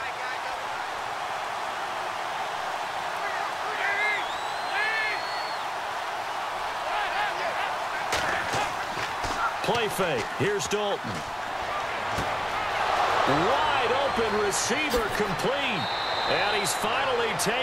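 A large stadium crowd roars steadily and swells louder.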